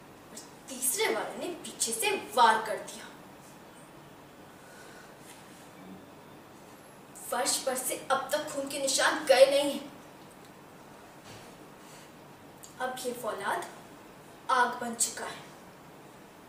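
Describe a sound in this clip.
A young girl speaks clearly and close by, in short bursts with pauses between them.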